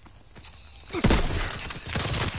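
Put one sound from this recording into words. A heavy explosion booms nearby, followed by a ringing rumble.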